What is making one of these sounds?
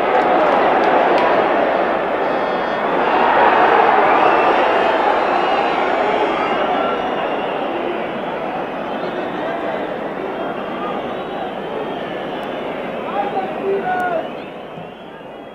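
A large stadium crowd roars and murmurs, loud at first and slowly fading.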